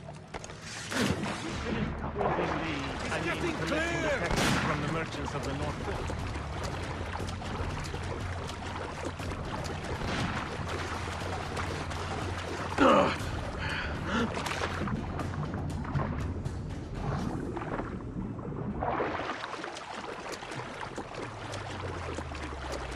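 Water splashes and churns as someone swims quickly.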